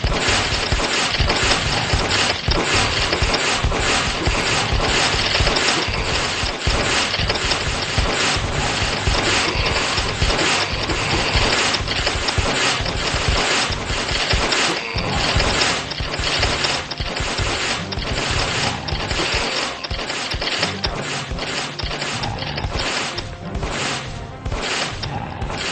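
Rapid game gunfire and laser shots crackle nonstop.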